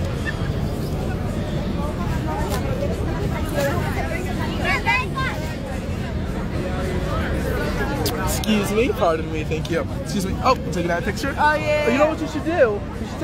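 A dense crowd murmurs and chatters outdoors.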